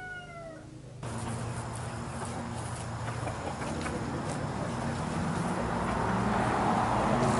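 Bees buzz steadily around a hive up close.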